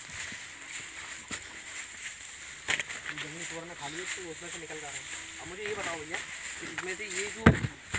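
Large leaves rustle as they are brushed aside.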